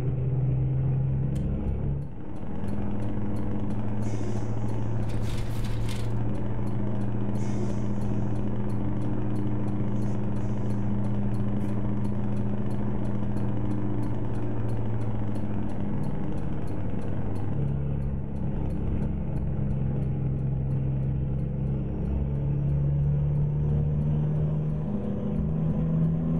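A truck engine hums steadily, rising and falling in pitch as the gears change.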